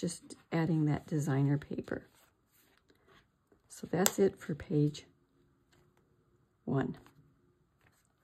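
Card paper rustles and slides as it is handled.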